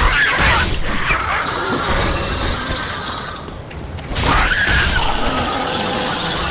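Swords clash and strike armour in a fight.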